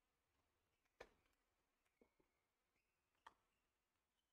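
A tennis ball bounces on a hard court a few times.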